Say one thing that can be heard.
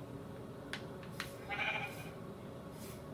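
A sheep bleats nearby.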